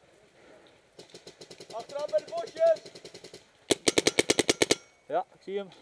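An electronic paintball marker fires in rapid bursts.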